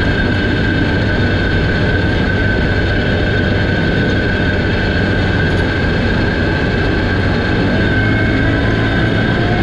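A vehicle engine drones steadily while driving.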